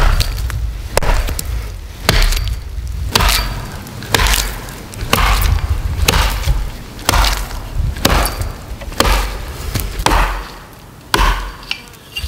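An axe chops into a tree trunk with sharp, regular blows.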